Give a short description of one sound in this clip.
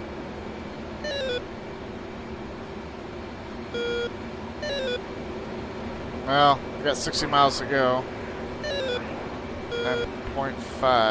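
A cockpit warning tone beeps in short bursts.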